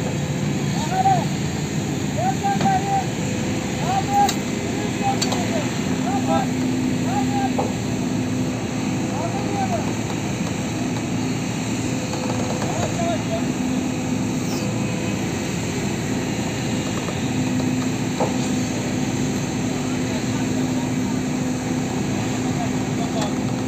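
A heavy excavator engine rumbles steadily nearby.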